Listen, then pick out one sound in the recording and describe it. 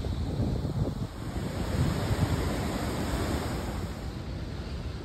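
Waves crash against rocks.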